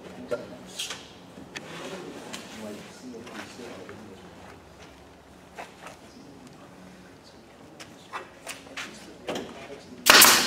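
Wooden boards knock together as they are set in place.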